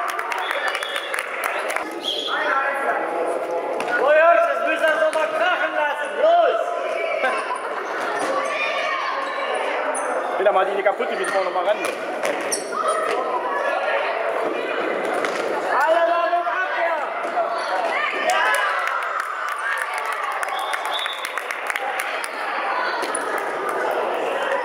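A crowd of spectators cheers and talks.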